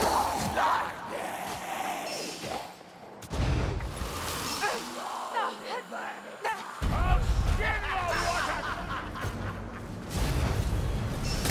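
Blades slash and strike creatures in quick hits.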